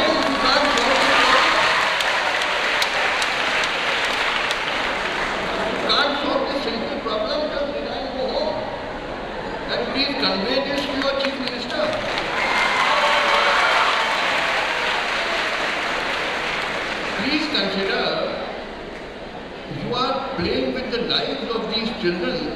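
An elderly man speaks forcefully into a microphone.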